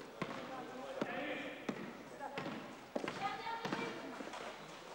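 Sneakers squeak sharply on a court.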